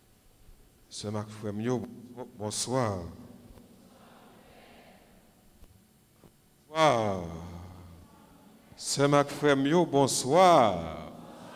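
A man chants into a microphone in an echoing room.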